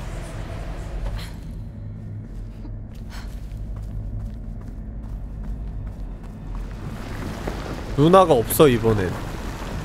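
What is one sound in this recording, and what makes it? Footsteps scuff on rocky ground.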